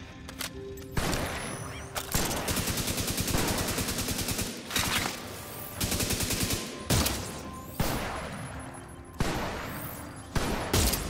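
Loud blasts boom and echo.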